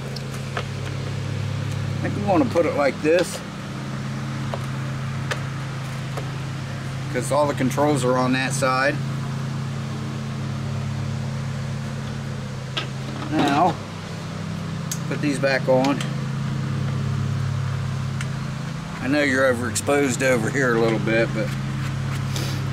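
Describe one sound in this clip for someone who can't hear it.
A small petrol engine runs with a steady low hum.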